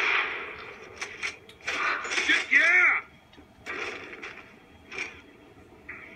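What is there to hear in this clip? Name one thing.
Gunshots crack in bursts.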